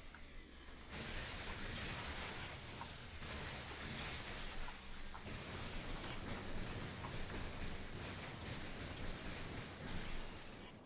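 Electric bolts crackle and buzz in harsh bursts.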